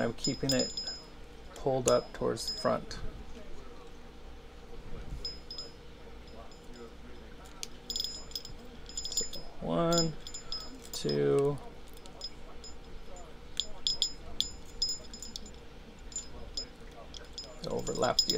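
Metal pliers click and tap against a small metal part.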